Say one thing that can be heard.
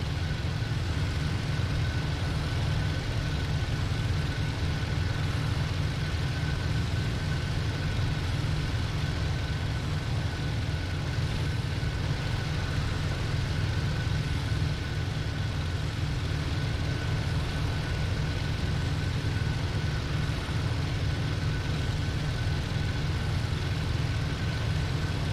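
A propeller plane's engine drones steadily with a deep, even roar.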